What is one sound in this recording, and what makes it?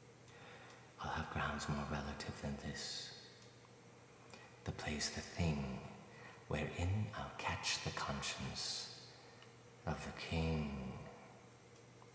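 A man speaks quietly and closely in short phrases.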